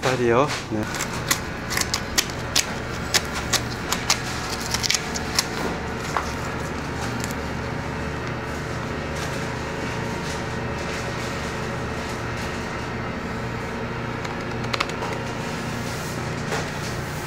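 A knife slices through raw meat with soft wet scraping.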